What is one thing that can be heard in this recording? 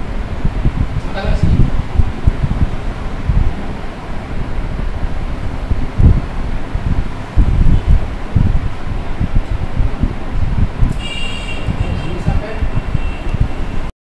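A man speaks in a lecturing tone.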